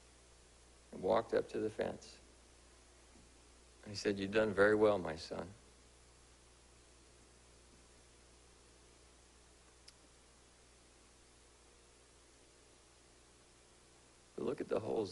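A man speaks slowly and calmly through a microphone in a room with a slight echo, pausing between phrases.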